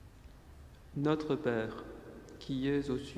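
A man reads aloud calmly into a microphone in a large echoing hall.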